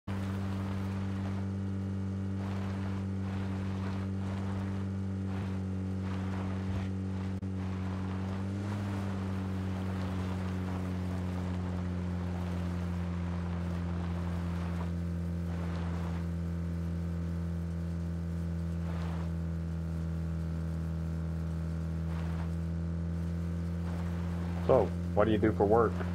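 A vehicle engine hums steadily while driving.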